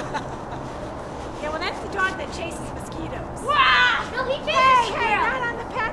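A young girl laughs excitedly.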